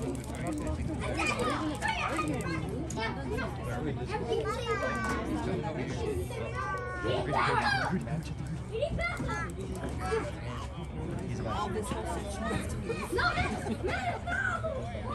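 Young men call out and talk across an open outdoor field.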